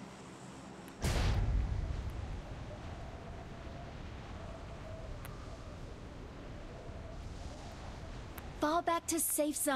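Wind rushes loudly past a skydiver in free fall.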